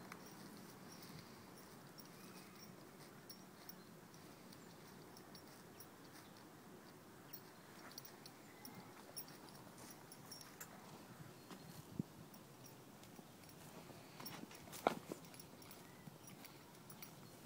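A horse tears and munches grass close by.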